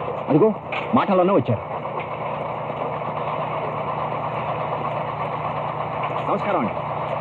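An engine runs steadily.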